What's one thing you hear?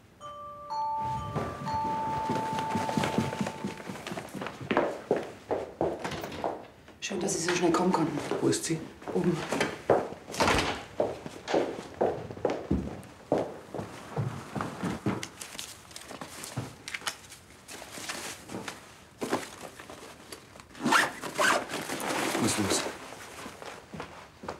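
Men talk with each other indoors.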